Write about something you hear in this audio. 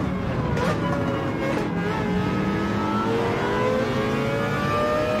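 A racing car engine roars and climbs in pitch as it accelerates through the gears.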